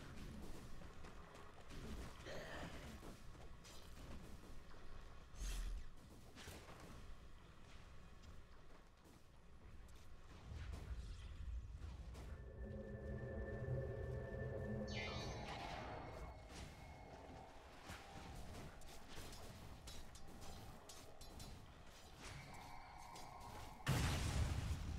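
Game spells crackle and zap as fighters clash in battle.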